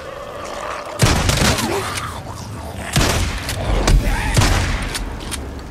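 Pistol shots bang sharply several times.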